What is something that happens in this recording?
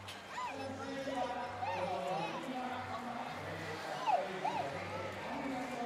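Orcas splash in the water of a pool.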